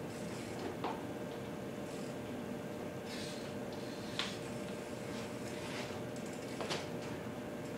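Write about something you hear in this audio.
A bike wheel knocks against a wooden floor.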